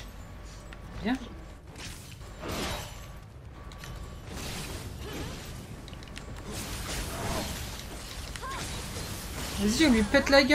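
Blades swish and clang in a sword fight.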